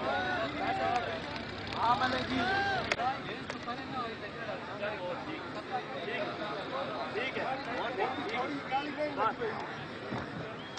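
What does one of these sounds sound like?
Several men talk and shout outdoors in a crowd.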